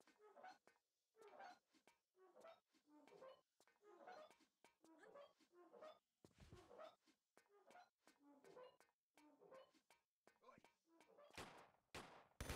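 Footsteps patter quickly and evenly.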